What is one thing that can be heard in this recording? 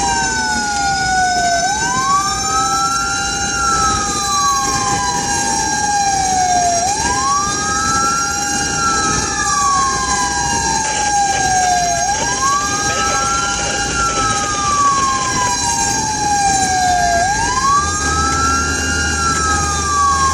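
Road noise hums steadily from a car driving at speed.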